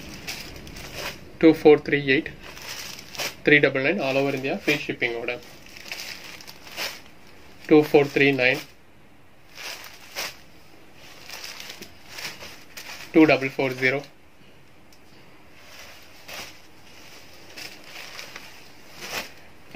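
Cloth rustles and crinkles as it is handled.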